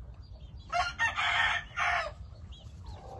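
A rooster crows loudly close by.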